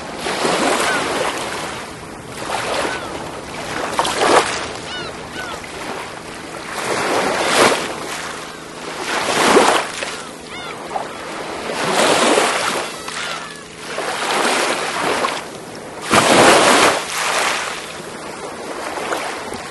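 Small waves wash up onto a pebbly shore and hiss as they draw back, again and again.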